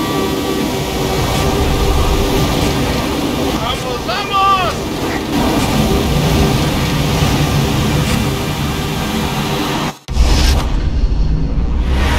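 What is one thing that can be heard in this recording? A race car engine roars at high speed.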